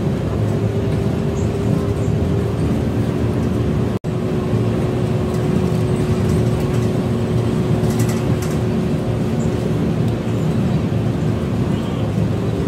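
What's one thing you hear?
Tyres roll on the road with a steady hiss.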